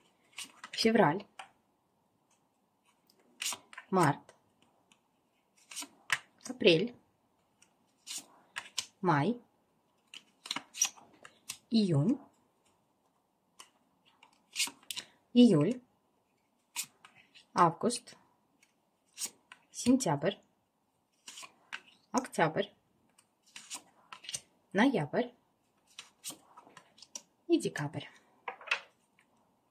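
Playing cards slap softly onto a table, one at a time, every few seconds.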